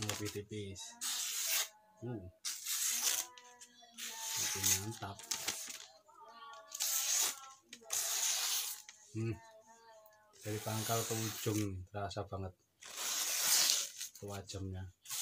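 A knife slices through paper in quick bursts.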